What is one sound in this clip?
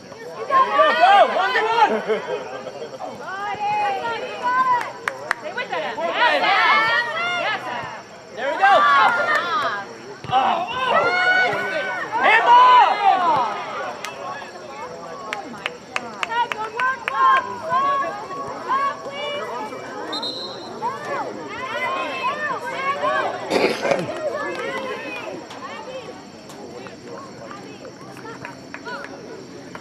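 Young women shout to each other outdoors on an open field.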